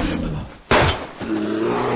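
A pistol fires a single sharp shot.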